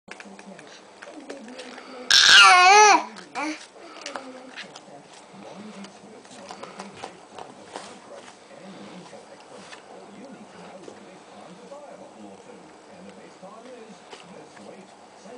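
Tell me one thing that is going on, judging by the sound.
Paper crinkles and rustles in a baby's hands.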